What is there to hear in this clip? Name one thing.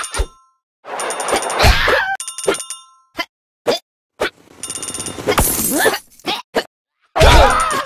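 Short game sound effects whoosh and pop.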